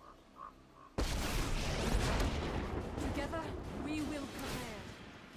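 A magical effect bursts with a swelling whoosh.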